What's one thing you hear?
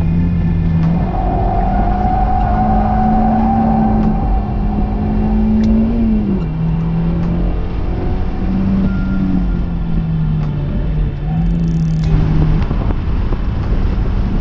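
A car engine hums loudly, its pitch rising and falling.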